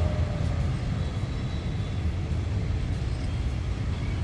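Train wheels clatter along the rails.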